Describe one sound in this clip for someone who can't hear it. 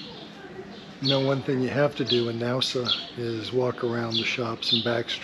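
A middle-aged man talks with animation close to the microphone.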